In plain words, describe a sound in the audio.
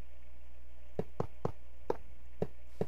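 Blocks are placed with short soft knocks.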